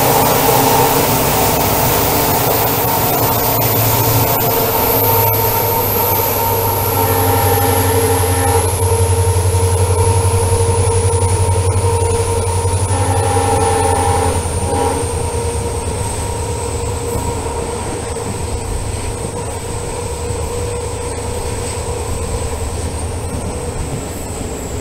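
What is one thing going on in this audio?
A diesel locomotive engine rumbles loudly and steadily.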